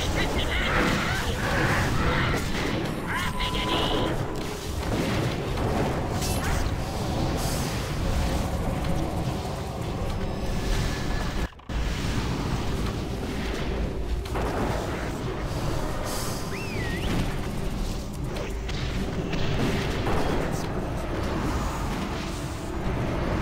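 Spell blasts and weapon clashes ring out in a busy fight.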